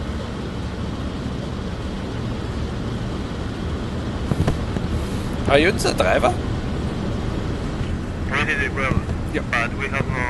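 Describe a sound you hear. A boat engine rumbles low and steady.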